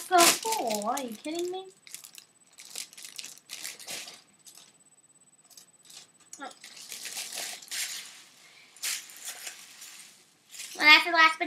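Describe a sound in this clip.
A foil wrapper crinkles and rustles in a girl's hands.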